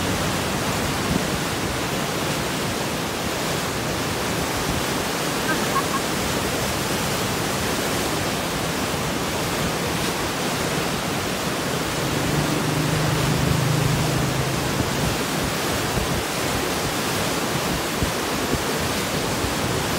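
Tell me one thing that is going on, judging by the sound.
Shallow water laps and swirls over a sandy shore.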